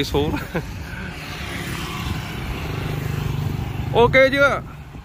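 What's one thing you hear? A motorbike engine hums as the motorbike passes close by on a road.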